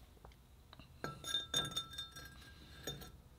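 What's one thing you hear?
A metal cylinder sleeve clinks and scrapes as a hand sets it into an engine block.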